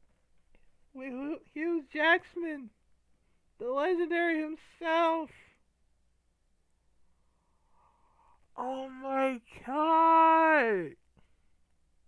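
A young man groans and laughs loudly with exasperation, close to a headset microphone.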